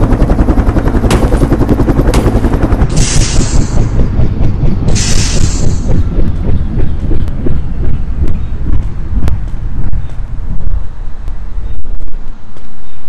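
A spacecraft's engine roars loudly and then winds down.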